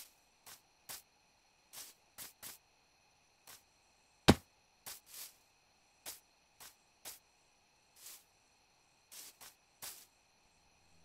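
Footsteps patter on grass and dirt in a video game.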